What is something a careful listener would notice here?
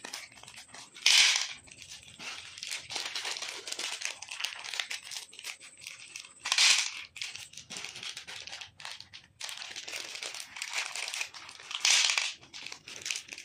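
Small hard-coated candies pour and clatter onto a ceramic plate.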